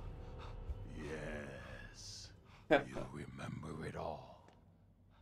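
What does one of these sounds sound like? A man speaks in a strained, pained voice close by.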